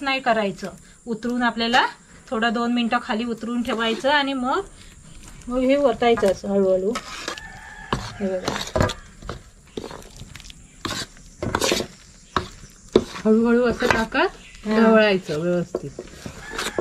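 A middle-aged woman talks calmly and close by.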